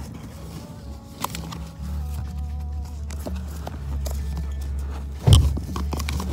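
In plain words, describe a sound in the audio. Clothing rustles and rubs right against the microphone.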